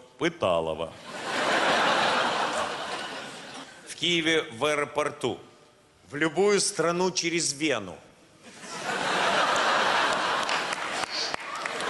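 An audience laughs loudly in a large hall.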